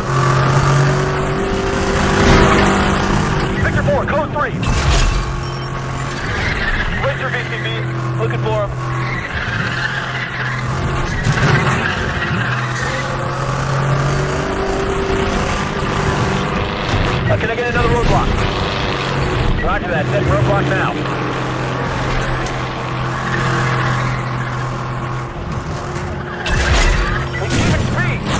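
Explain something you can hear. A powerful car engine roars at high speed, rising and falling as gears shift.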